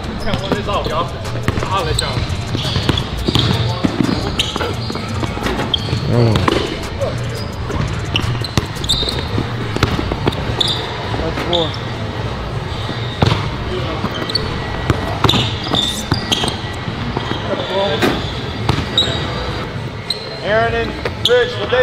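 A basketball bounces on a hard court floor.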